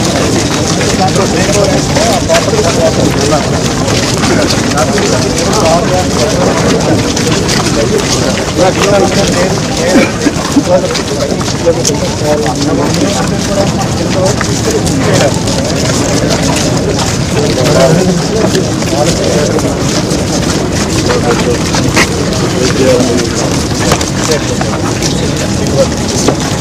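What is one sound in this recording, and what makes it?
A crowd of men talk and murmur close by outdoors.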